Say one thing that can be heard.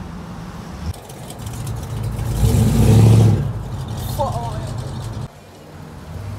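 A muscle car engine roars as it accelerates away.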